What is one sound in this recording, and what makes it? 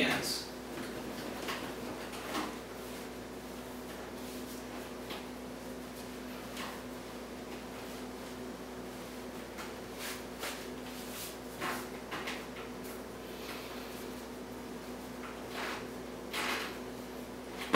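Cloth rustles softly as it is pulled and wrapped over a head.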